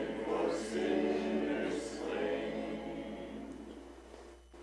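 An elderly man sings through a microphone.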